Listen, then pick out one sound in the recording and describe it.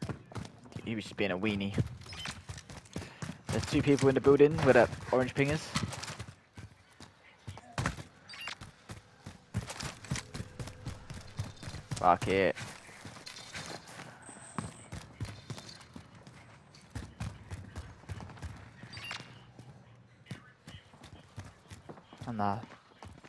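Footsteps tap quickly on hard floors and stairs.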